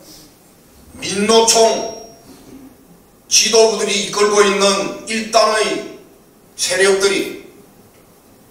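An older man speaks calmly into a microphone, with pauses between phrases.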